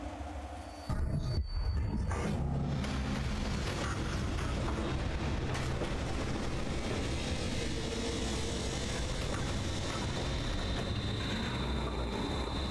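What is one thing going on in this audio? A deep electronic rumble swells and crackles.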